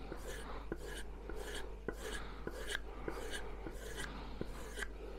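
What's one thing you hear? A blade taps against wood at each stroke.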